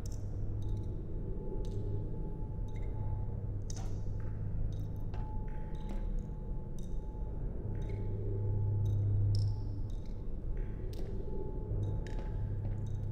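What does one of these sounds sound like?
Footsteps clank on metal ladder rungs at a steady pace.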